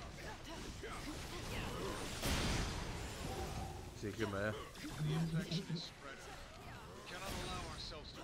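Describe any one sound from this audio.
Blows land with sharp impacts.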